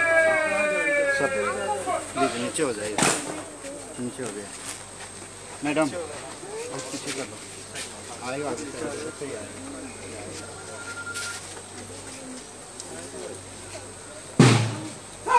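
A crowd of people talks nearby outdoors.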